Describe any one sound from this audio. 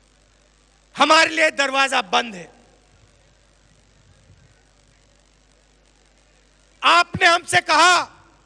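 A man gives a speech loudly through a microphone and loudspeakers, in short forceful bursts.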